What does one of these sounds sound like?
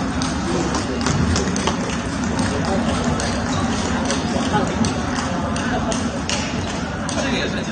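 A large hall echoes with a steady murmur of many players.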